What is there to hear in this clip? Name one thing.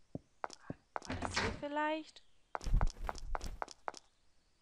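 A young woman speaks briefly into a headset microphone.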